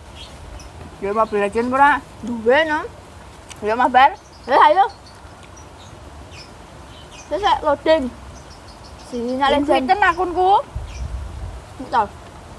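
Teenage girls chat casually close by.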